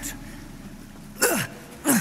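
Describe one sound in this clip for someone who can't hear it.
A man asks a question with concern, close by.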